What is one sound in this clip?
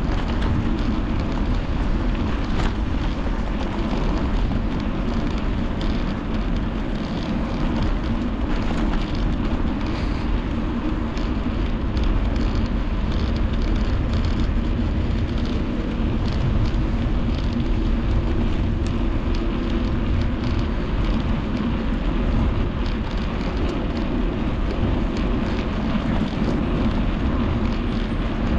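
Wind rushes loudly past the microphone of a moving bike.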